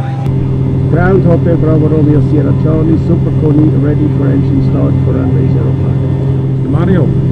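A man speaks calmly into a headset microphone over the engine noise.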